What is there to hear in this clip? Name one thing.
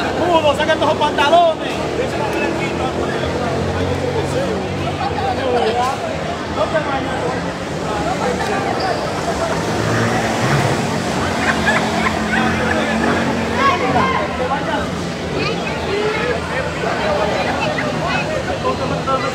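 A crowd of men and boys talks and shouts with animation in a large echoing hall.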